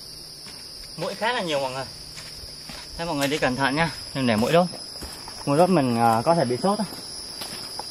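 A young man talks casually close by, outdoors.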